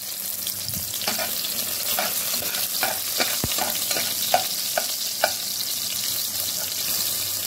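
A slotted metal spatula scrapes and taps against a pot.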